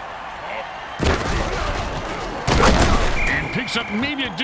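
Players collide hard in a tackle.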